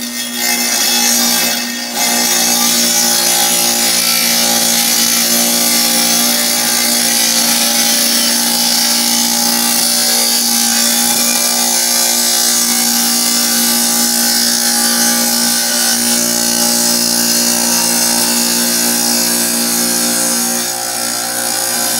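A saw motor whines loudly and steadily.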